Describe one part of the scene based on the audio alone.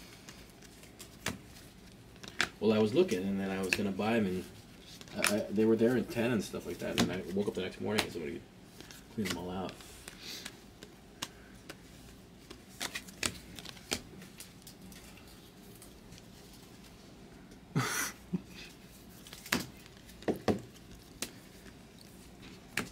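Trading cards flick and click as they are shuffled by hand.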